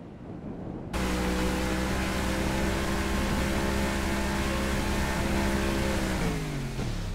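A speedboat engine roars steadily.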